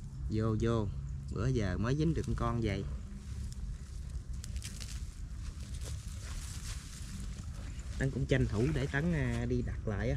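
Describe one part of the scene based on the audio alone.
A mesh net rustles as it is handled.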